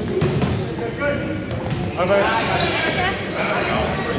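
A volleyball thuds off a player's hands.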